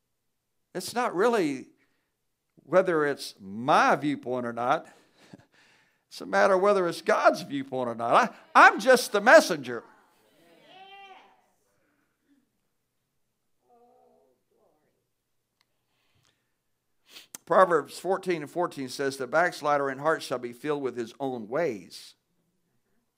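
A man preaches through a microphone with animation, in a large hall, pausing between phrases.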